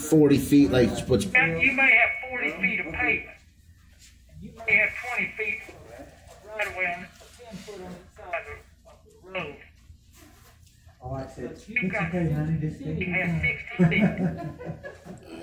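An elderly man speaks calmly through a mask, heard over an online call.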